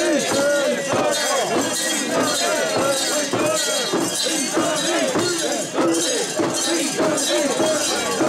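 Metal fittings on a carried shrine jingle and clink.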